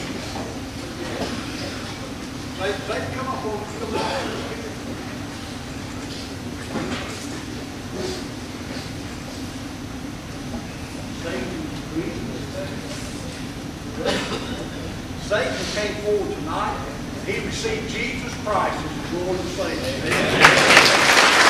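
A man speaks to an audience through a microphone in a large echoing hall.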